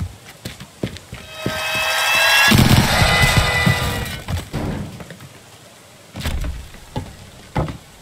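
A video game gun fires in sharp bursts.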